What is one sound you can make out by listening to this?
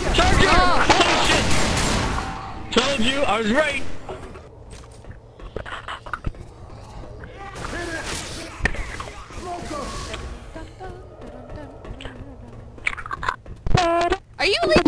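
A shotgun fires in sharp, loud blasts.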